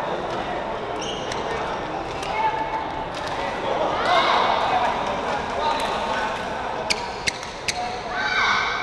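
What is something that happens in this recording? A shuttlecock is struck sharply by rackets in a large echoing hall.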